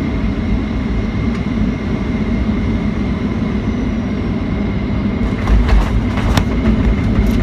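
An aircraft engine roars steadily as a plane speeds along a runway.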